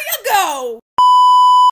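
A steady high test tone beeps loudly.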